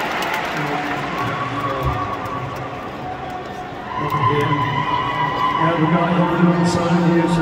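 A man sings into a microphone through loud concert speakers in a large hall.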